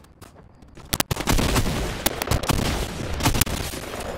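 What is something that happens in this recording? Gunshots and blasts crackle loudly at close range.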